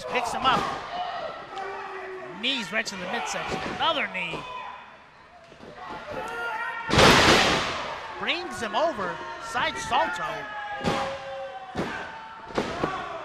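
A crowd shouts and cheers in a large echoing hall.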